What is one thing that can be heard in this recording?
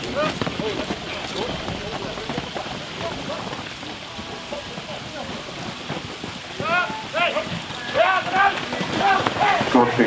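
Horses' hooves pound on soft ground.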